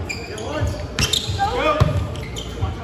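A volleyball is struck with a sharp slap.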